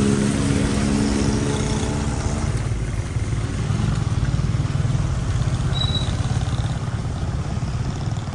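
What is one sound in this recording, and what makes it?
Tyres swish over a wet road.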